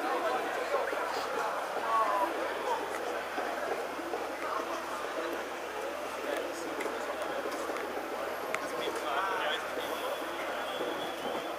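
A crowd of men and women talk and call out outdoors.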